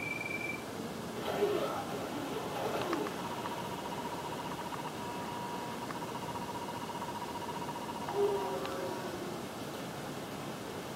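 Electronic video game sounds play through a television speaker.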